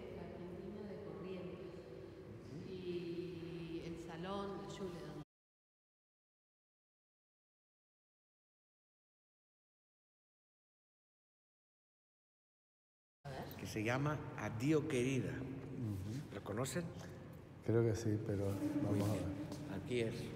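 A man talks close by in an echoing room.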